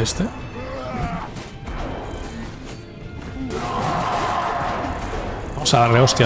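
Video game combat effects clash and burst.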